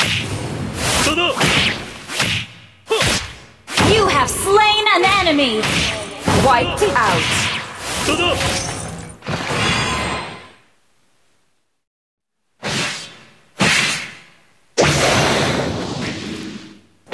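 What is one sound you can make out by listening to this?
Game combat effects clash and whoosh in quick bursts.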